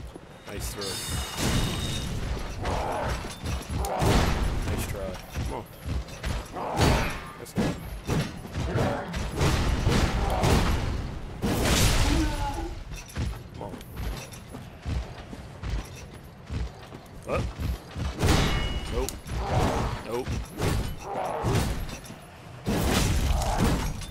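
Heavy weapons swing and crash in a fight.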